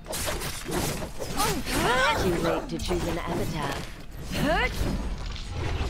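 Sword swings whoosh and clang.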